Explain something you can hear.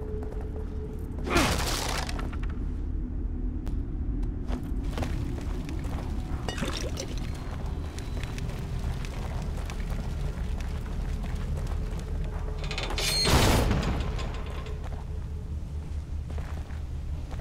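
Footsteps crunch over a rough floor.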